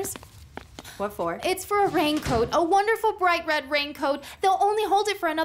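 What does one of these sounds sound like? A second young woman answers calmly up close.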